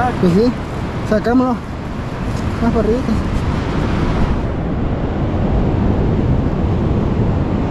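Wind blows and rumbles across the microphone, outdoors.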